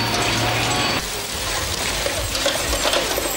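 Bowls clink.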